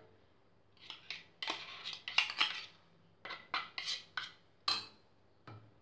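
A spoon scrapes and taps against a small bowl.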